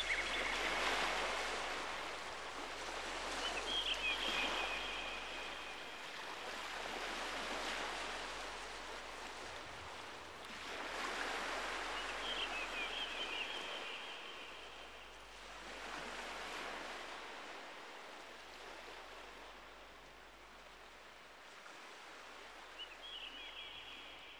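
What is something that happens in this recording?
Wind rustles through the leaves of nearby trees in slow surges.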